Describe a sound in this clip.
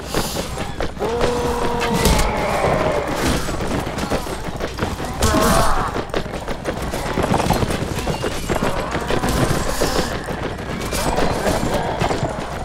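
Men shout and yell in battle.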